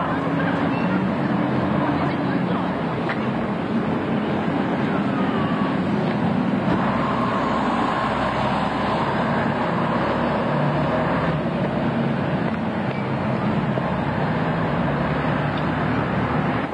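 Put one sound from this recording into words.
Street traffic hums steadily in the background.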